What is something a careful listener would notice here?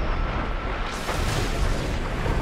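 A swimmer breaks through the surface with a splash.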